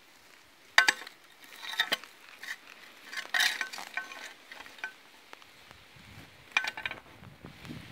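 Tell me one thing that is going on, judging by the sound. A woven plastic sack rustles and crinkles as it is handled.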